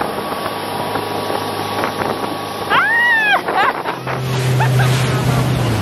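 A motorboat engine drones.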